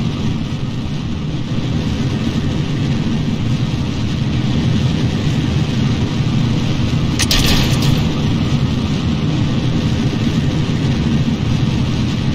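Rocket engines roar steadily with a deep rumble.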